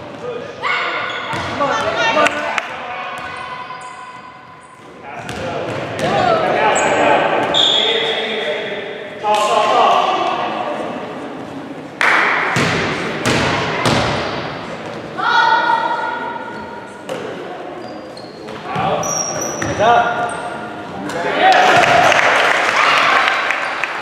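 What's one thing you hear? Young girls shout and call out during play.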